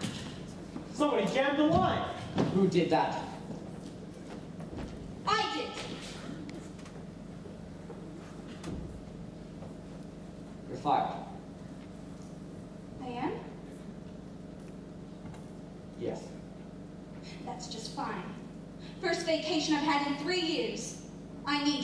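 A young man speaks from a stage, echoing in a large hall.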